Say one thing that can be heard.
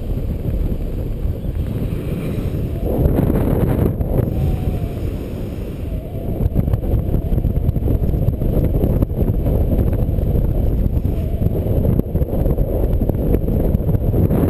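Wind rushes and buffets the microphone as a paraglider flies.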